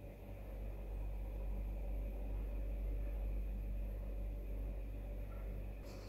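A makeup brush brushes softly against skin.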